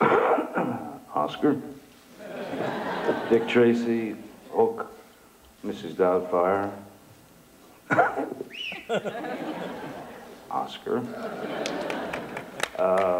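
A man speaks calmly into a microphone with pauses, heard through a loudspeaker in a large room.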